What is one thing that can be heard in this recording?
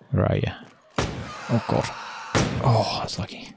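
A blunt weapon strikes a body with heavy thuds.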